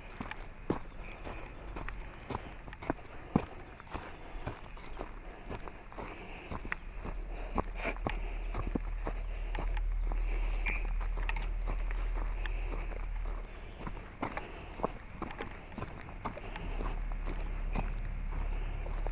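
Footsteps crunch on a dirt trail through dry grass.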